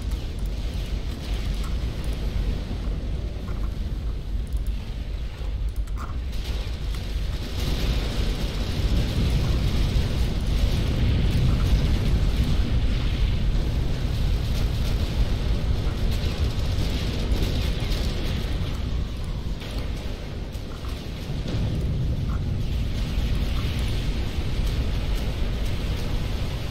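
Explosions and gunfire rumble steadily in a distant battle.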